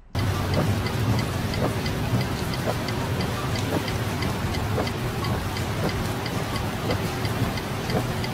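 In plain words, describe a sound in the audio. A windscreen wiper sweeps across glass.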